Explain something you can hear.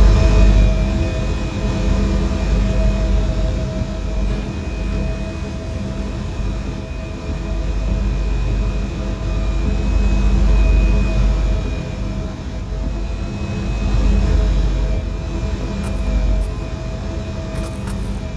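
An electric train hums steadily as it stands at a platform.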